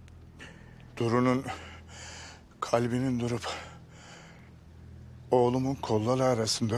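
An elderly man speaks in a low, grave voice nearby.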